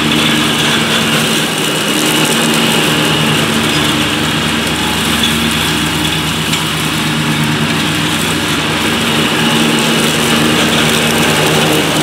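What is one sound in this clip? Mower blades whir through thick, tall grass.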